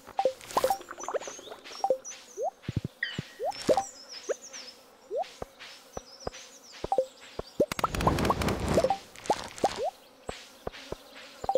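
Short game menu sounds click and pop repeatedly.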